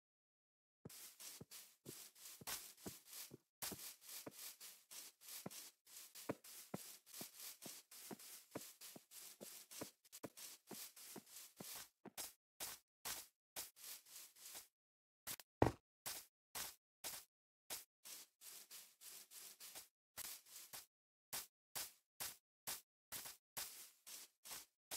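Footsteps rustle steadily over grass.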